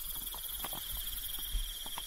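Beer pours and fizzes into a cup.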